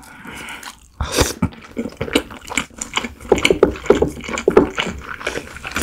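A young woman chews food with wet, crunchy mouth sounds close to a microphone.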